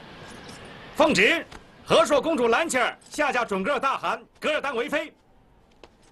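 A young man loudly proclaims close by.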